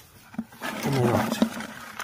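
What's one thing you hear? A hand rummages through a tangle of wet worms in a plastic bucket.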